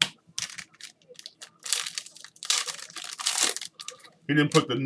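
Plastic wrapping crinkles and rustles as a pack is torn open.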